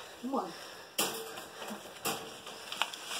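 A wire cage rattles and clinks.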